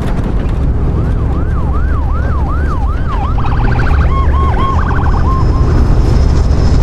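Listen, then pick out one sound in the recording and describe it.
A siren wails nearby, rising and falling.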